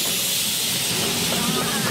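A tractor engine runs nearby.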